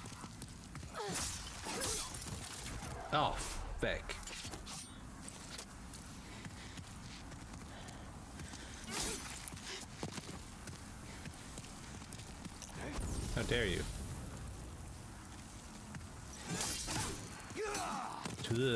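Swords clash and slash.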